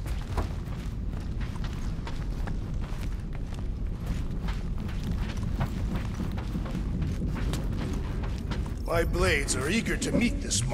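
Heavy footsteps thud on a metal floor.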